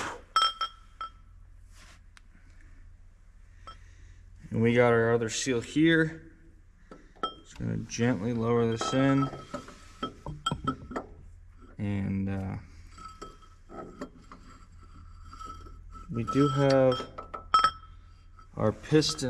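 A heavy metal tool clinks against an engine block.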